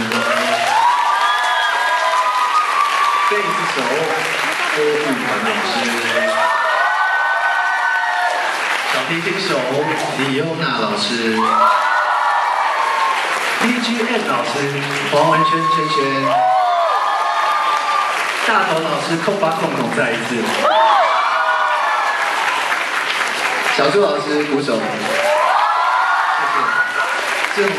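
A band plays along with keyboards, guitars and drums.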